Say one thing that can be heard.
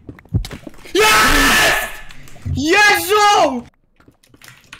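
A young man shouts loudly into a close microphone.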